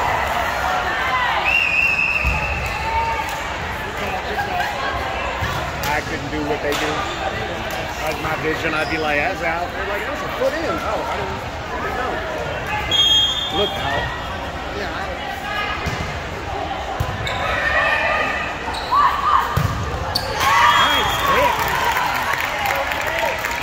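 Many voices chatter and call out in a large echoing gym.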